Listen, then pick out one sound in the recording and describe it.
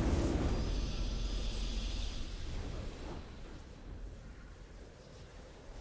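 A triumphant game fanfare booms and slowly fades.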